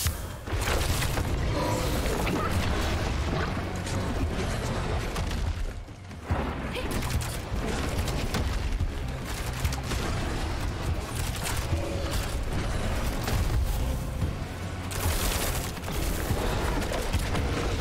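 Game spells crackle and explode in a fight.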